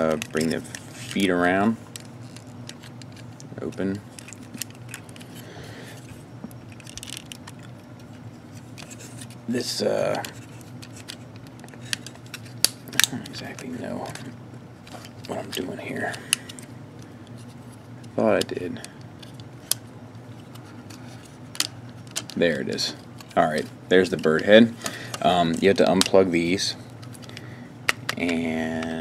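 Plastic toy parts click and snap as they are turned and folded.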